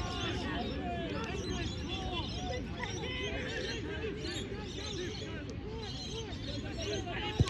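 Many men shout and call out across an open field outdoors.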